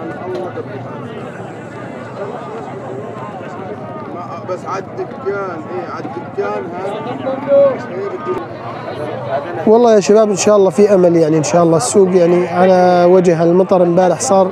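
A crowd of men chatter and call out outdoors.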